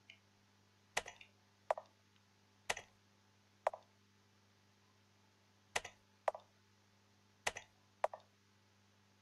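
Short electronic blips sound several times.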